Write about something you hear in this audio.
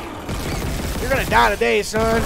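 A futuristic gun fires with a sharp burst.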